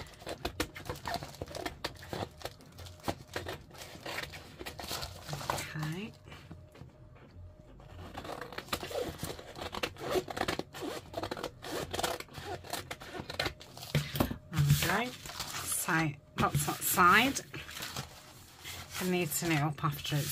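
Stiff paper rustles and crinkles as it is handled.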